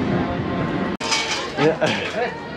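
Footsteps walk on a metal walkway.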